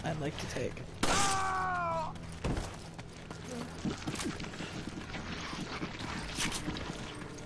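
Gunshots ring out with sharp cracks.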